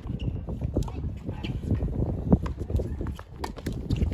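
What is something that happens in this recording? A tennis ball is struck with a racket with a sharp pop.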